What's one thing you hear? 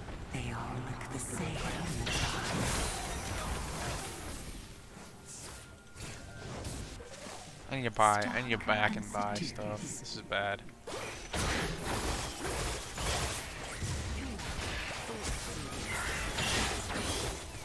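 Magic spell blasts crackle and whoosh in a fight.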